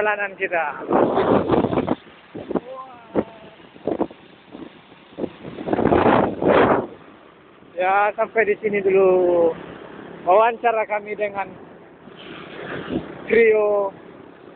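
Wind rushes past loudly in gusts.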